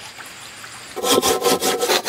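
A blade chops into wood with sharp, repeated knocks.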